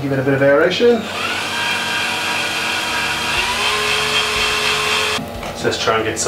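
A power drill whirs steadily.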